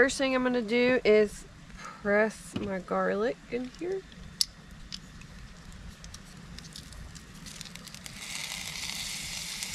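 Garlic sizzles in a hot pan.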